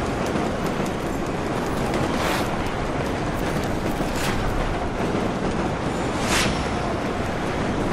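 Jet engines roar with a steady rush.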